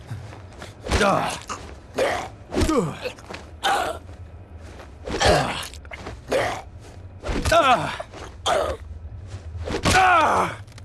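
Heavy blows thud wetly into a body, again and again.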